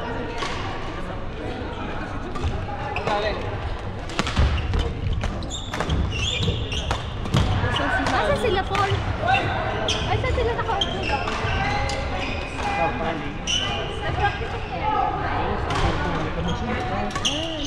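Several men and women talk and call out around the court.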